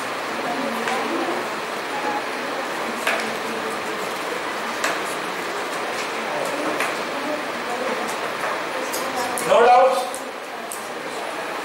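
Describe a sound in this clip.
A man speaks calmly through a close microphone, like a lecturer explaining.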